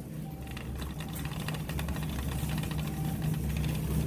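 A shopping cart rattles as it rolls.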